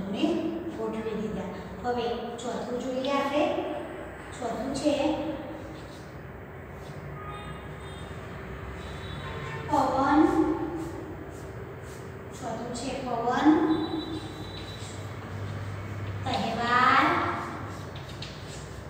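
A woman reads aloud slowly and clearly nearby.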